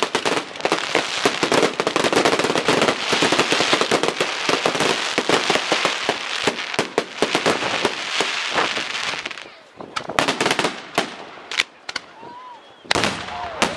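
Fireworks whoosh and whistle as they shoot upward.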